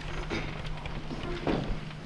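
Chair legs scrape and knock on a wooden stage floor.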